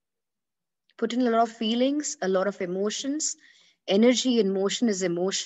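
A woman sings softly and expressively close to a microphone.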